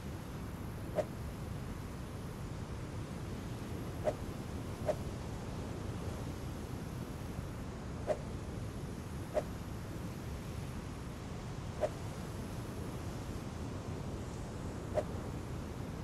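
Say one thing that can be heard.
Soft interface clicks sound now and then as items are moved between slots.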